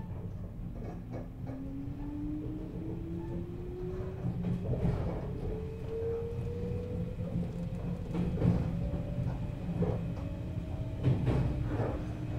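An electric train's motor hums and whines, rising steadily in pitch as the train speeds up.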